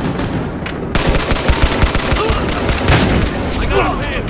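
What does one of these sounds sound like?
A rifle fires rapid, loud shots.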